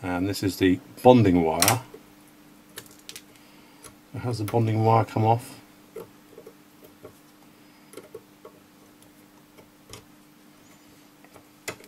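A hand crimping tool clicks as it squeezes a small connector.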